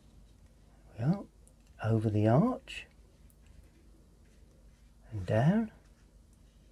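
An older man speaks calmly and close by, in short phrases.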